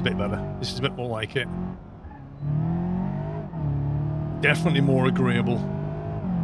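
A car engine hums and revs as the car speeds up.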